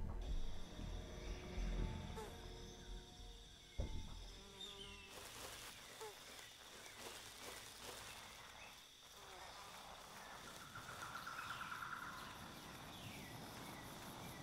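Footsteps rustle through dense grass and leaves.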